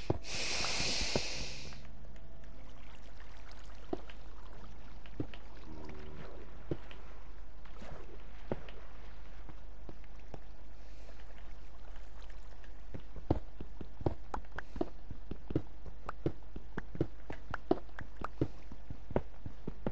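A pickaxe taps and breaks stone with quick repeated knocks.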